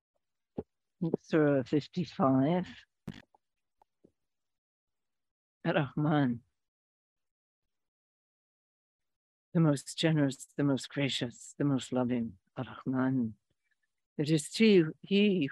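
A middle-aged woman speaks calmly and softly, close by, with long pauses.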